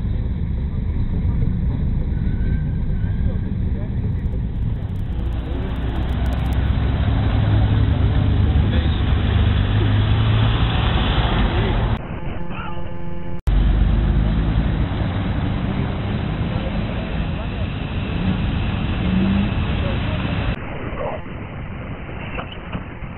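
Car engines rumble as cars drive slowly past.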